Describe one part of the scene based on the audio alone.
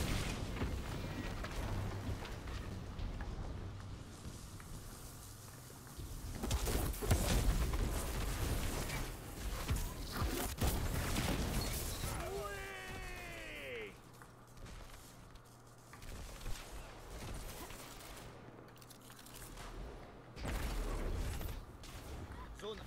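Gunfire and energy blasts crackle from a game.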